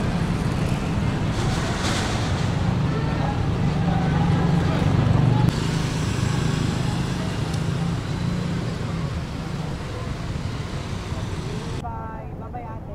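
Traffic rumbles steadily along a nearby street.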